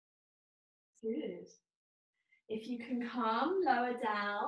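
A woman speaks calmly and clearly, with pauses.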